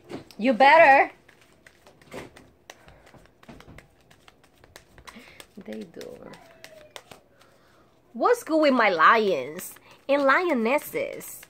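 Playing cards shuffle and riffle softly.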